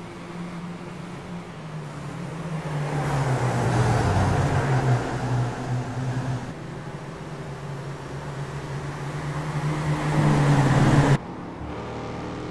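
Racing car engines roar and rise and fall in pitch as the cars speed around a track.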